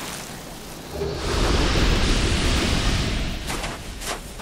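A loud magical whoosh swells and fades.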